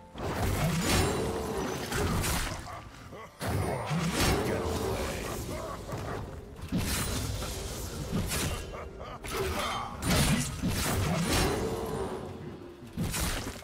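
Fantasy battle sounds of spells whooshing and blows striking ring out.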